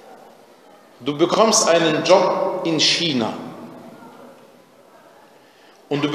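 A man recites in a slow, melodic voice with echo.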